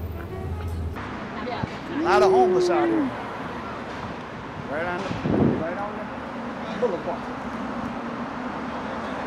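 Traffic hums outdoors in the city.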